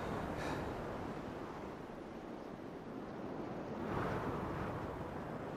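Wind blows across open ground in gusts that rise and fall.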